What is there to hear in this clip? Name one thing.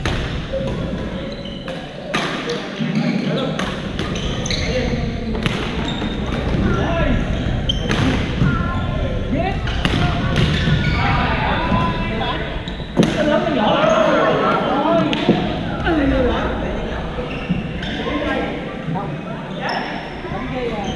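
Young men and women call out and chatter around the hall.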